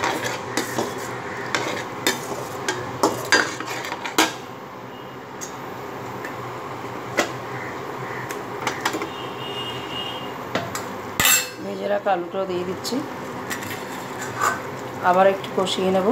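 A thick sauce bubbles and sizzles in a pan.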